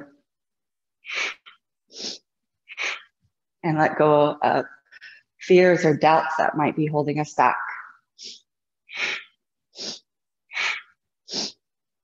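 A young woman breathes in and out deeply and slowly.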